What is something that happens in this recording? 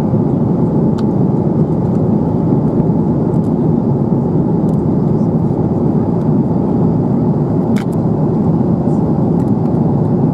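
An aircraft cabin hums with a steady low engine drone.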